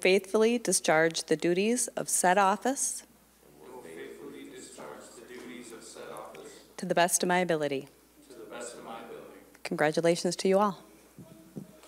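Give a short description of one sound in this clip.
A woman reads out an oath through a microphone.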